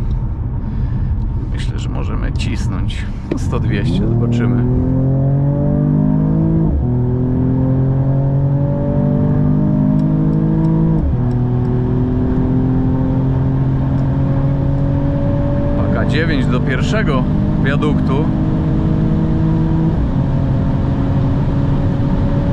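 Tyres and wind rush steadily at high speed.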